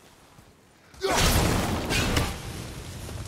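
An explosion bursts loudly.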